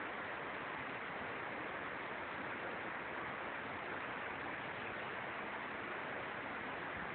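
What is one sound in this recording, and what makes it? Leaves rustle steadily in a breeze.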